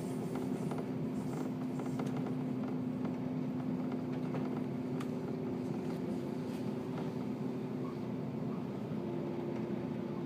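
A train rumbles steadily along the tracks with a low droning hum.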